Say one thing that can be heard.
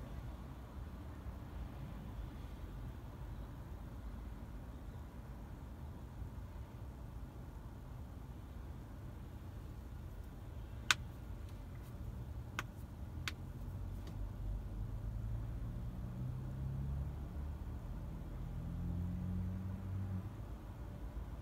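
Traffic rumbles steadily in the distance, outdoors.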